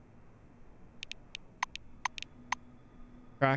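Soft interface clicks tick several times.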